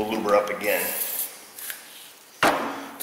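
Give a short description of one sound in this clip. An aerosol can sprays with a short hiss.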